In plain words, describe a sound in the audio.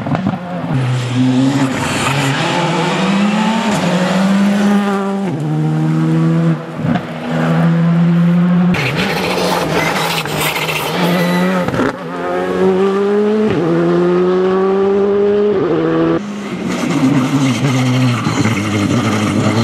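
A rally car engine roars loudly and revs up and down as it races past.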